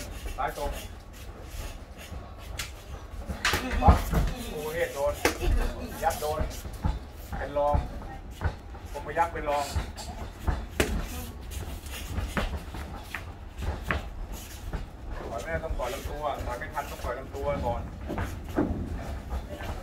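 Bare feet shuffle and slap on a hard floor.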